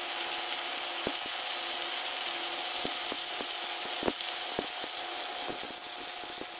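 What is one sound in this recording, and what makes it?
An arc welder crackles and hisses steadily up close.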